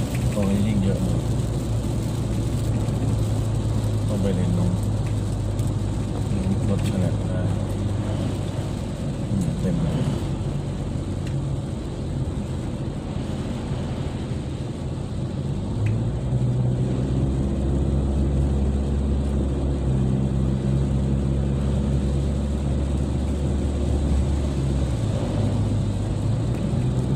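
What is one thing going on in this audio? Rain patters on the windshield.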